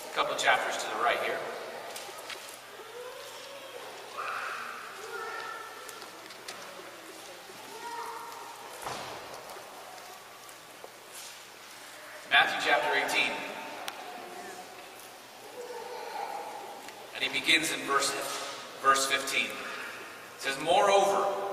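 A young man reads aloud with expression through a microphone in a large echoing hall.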